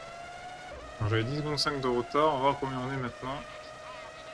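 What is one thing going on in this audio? A racing car roars past at close range.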